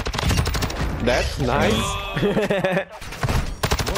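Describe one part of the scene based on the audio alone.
A young man talks with excitement close to a microphone.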